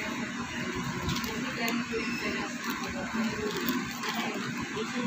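Plastic packaging crinkles and rustles close by.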